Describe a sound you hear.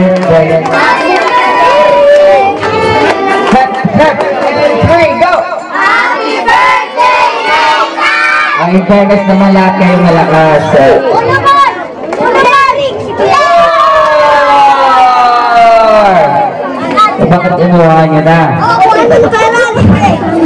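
Children shout and cheer.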